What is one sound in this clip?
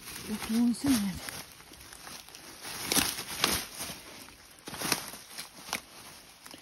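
Footsteps crunch on dry leaf litter.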